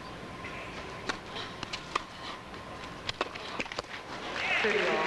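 A tennis ball is struck back and forth with sharp pops in a large echoing hall.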